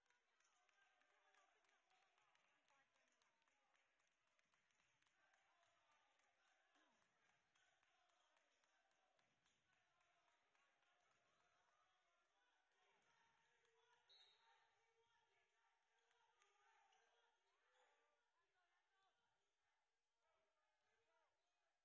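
Spectators chatter in the stands of an echoing gym.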